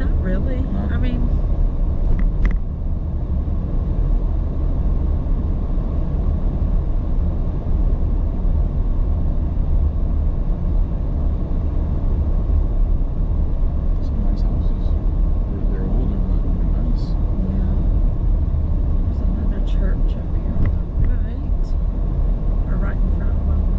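A car's engine hums and its tyres rumble steadily on the road.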